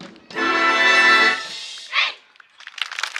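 A brass band plays a loud final chord outdoors.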